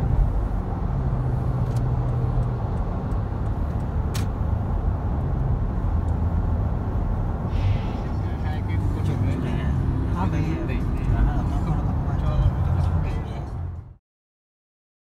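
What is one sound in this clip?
A car's engine and tyres rumble steadily on a highway, heard from inside the car.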